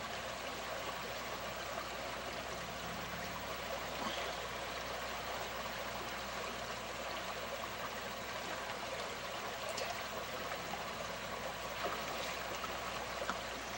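Water splashes around a person wading through a shallow stream.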